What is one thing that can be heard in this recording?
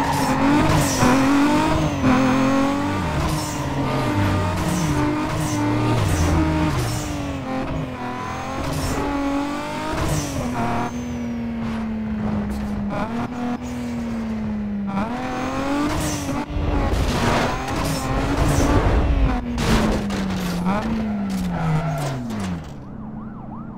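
A sports car engine roars and revs up and down through gear changes.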